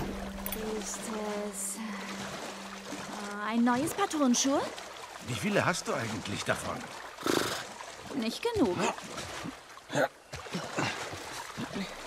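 Water splashes and sloshes as someone swims.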